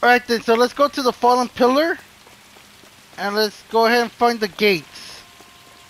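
Footsteps run quickly on a hard stone floor.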